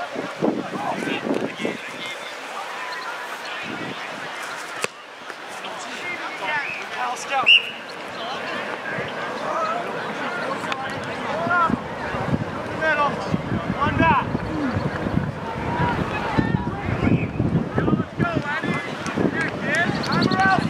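A crowd of people talk and shout across an open field, with some cheering.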